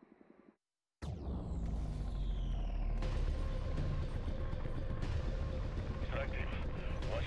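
A helicopter's rotor thumps and roars up close.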